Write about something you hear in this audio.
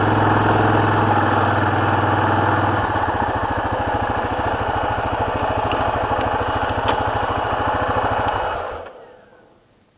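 An ATV engine idles and chugs loudly up close, then shuts off.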